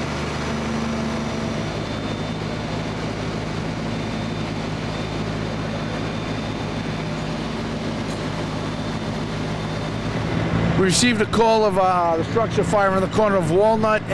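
A fire engine's pump rumbles steadily outdoors.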